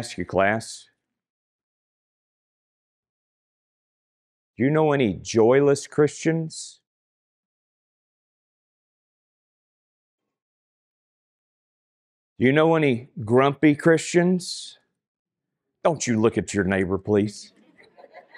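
A man speaks calmly into a microphone, in short phrases with long pauses.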